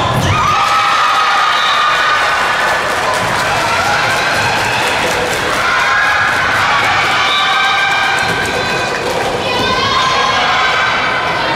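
A crowd of young spectators cheers and chants loudly in a large echoing hall.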